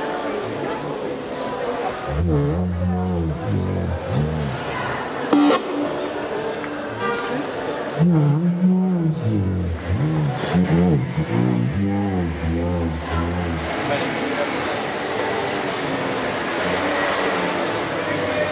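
Electronic music with deep, bending bass tones plays loudly through speakers.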